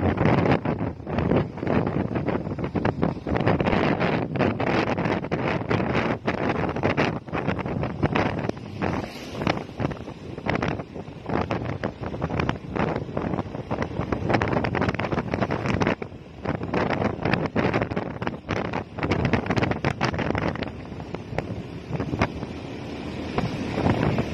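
Wind rushes loudly past while riding.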